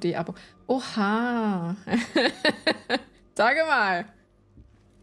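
A young woman laughs aloud.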